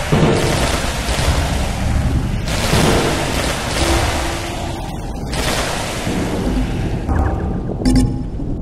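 Rapid electronic zaps and bursts from a video game fire continuously.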